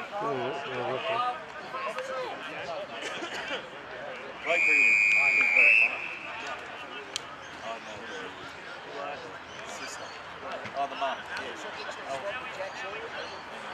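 Young players shout and call to each other across an open sports field.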